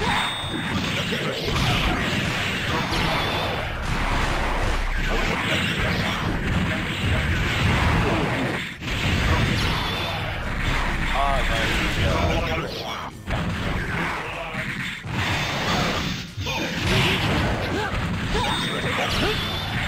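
Punches and kicks land with sharp smacks in quick bursts.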